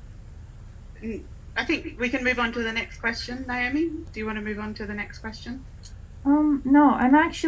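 A young woman speaks quietly and haltingly into a microphone.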